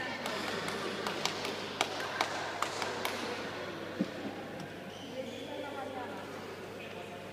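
Shoes squeak and thud on a hall floor.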